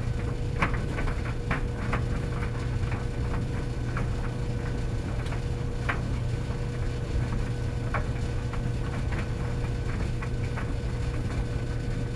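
Commercial tumble dryers hum and rumble with a steady low drone.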